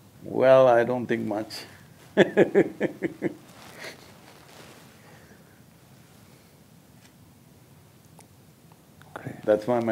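An elderly man speaks calmly and expressively through a microphone, with pauses.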